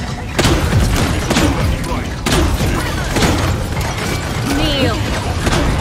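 Video game guns fire in loud, repeated bursts.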